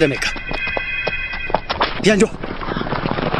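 A man cries out in surprise.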